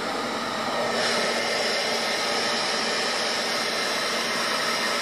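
An electric sander whirs steadily against wood.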